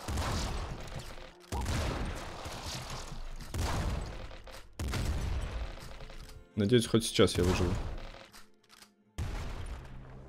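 Gunshots and explosions burst loudly in a video game.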